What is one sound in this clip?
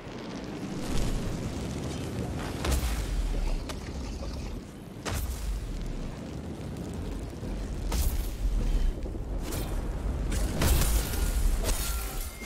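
A large creature growls with a deep rumble.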